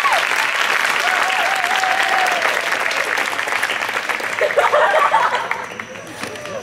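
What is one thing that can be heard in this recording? An audience claps and cheers outdoors.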